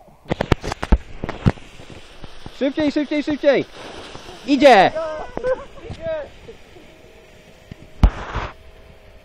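A firework hisses as it burns.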